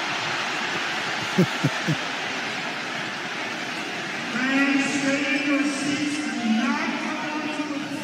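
A crowd murmurs and shouts in a large echoing arena.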